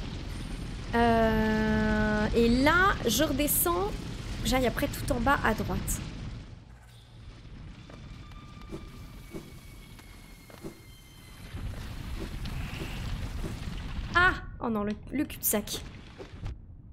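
A young woman speaks animatedly and close into a microphone, with a singsong voice.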